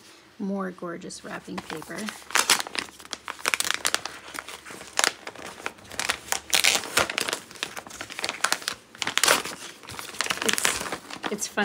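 Paper rustles and crinkles as wrapped items are handled up close.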